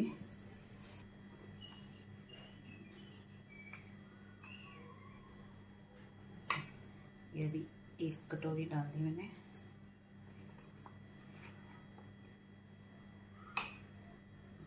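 A spoon scrapes and taps against a bowl.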